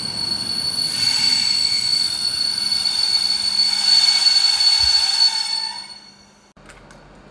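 Air hisses loudly from a train close by, then stops.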